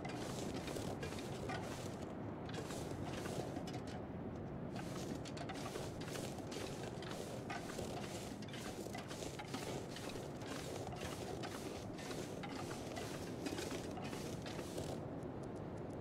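Footsteps crunch steadily through snow and grass outdoors.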